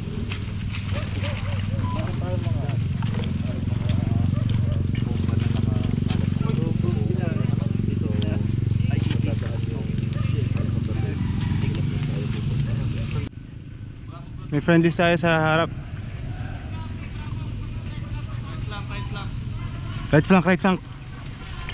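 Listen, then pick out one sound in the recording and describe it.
Boots swish through tall grass.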